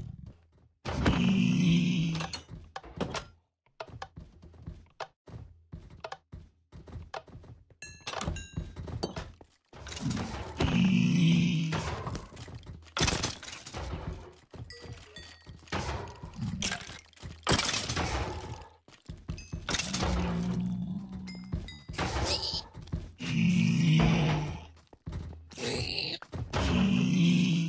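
Creatures grunt and squeal as they take hits.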